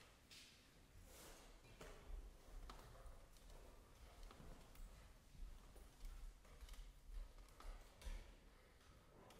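Footsteps shuffle softly across the floor.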